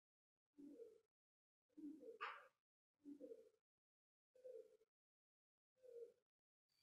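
A man speaks slowly and calmly in short phrases, heard through an online call.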